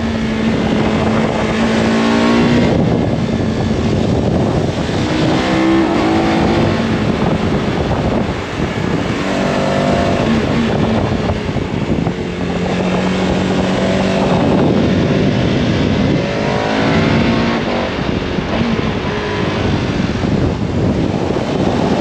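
A motorcycle engine revs and changes pitch as it rides along a winding road.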